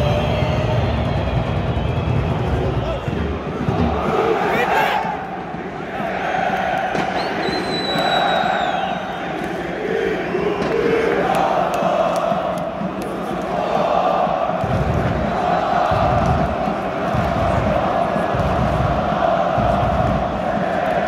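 A large stadium crowd chants loudly together in a rhythmic, echoing roar.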